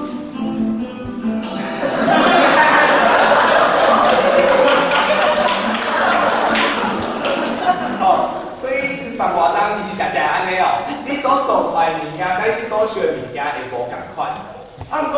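A young man speaks with animation through a microphone in a large echoing hall.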